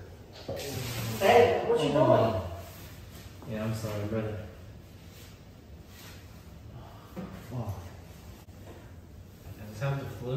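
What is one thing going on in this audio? Toilet paper rustles as it is pulled off a roll.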